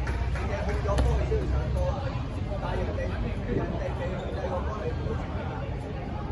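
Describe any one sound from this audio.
A ball thuds when it is thrown and caught.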